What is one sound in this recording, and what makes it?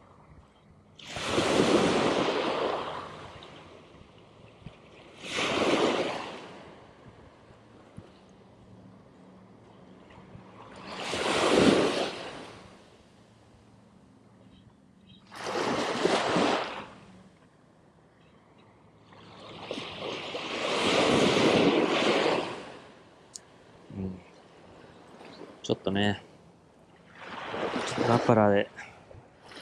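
Waves wash up onto a sandy shore in repeated surges.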